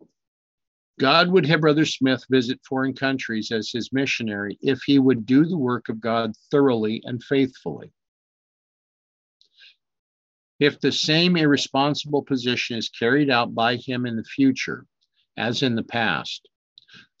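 A middle-aged man speaks calmly and closely into a microphone, reading out in short bursts.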